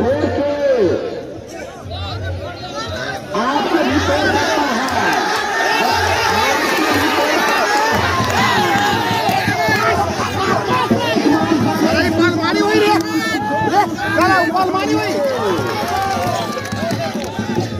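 A man announces loudly through a microphone and loudspeaker.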